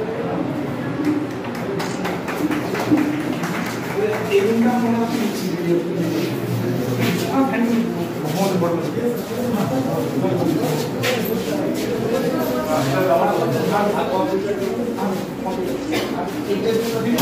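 Several men talk at once nearby.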